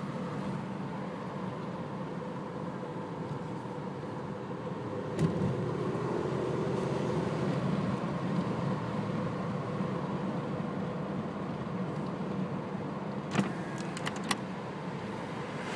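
Tyres rumble steadily on a paved road.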